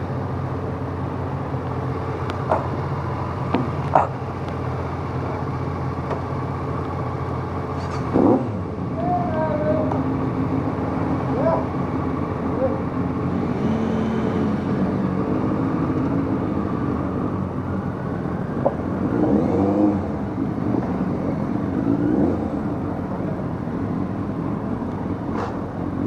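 Wind buffets a microphone.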